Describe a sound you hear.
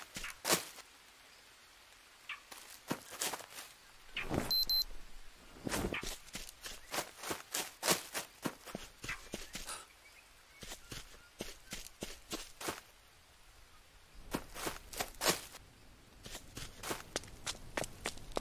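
Footsteps crunch through leaves and undergrowth.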